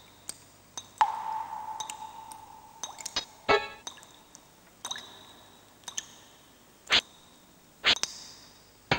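Menu selection beeps and clicks sound in quick succession.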